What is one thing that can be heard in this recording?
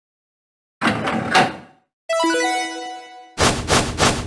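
An electronic lock beeps and clicks open.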